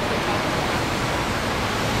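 A bus engine rumbles along a wet street.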